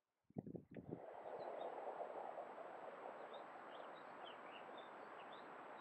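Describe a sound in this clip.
A stream trickles and burbles over rocks.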